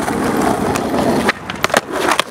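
Skateboard wheels roll roughly over asphalt.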